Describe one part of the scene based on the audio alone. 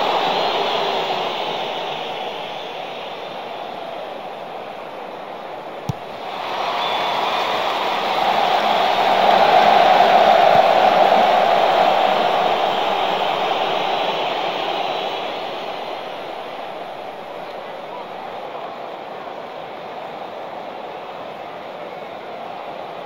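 A large stadium crowd roars steadily, swells loudly and then fades to a low murmur.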